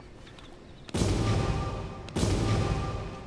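A magical energy beam roars with a deep hum.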